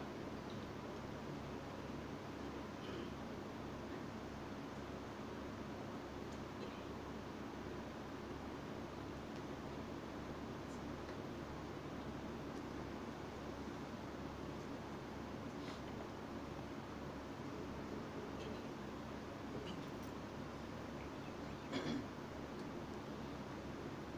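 An electric fan hums steadily.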